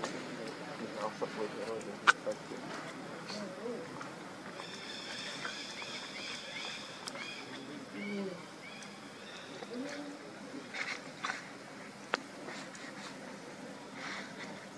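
Monkeys rustle softly as they groom one another.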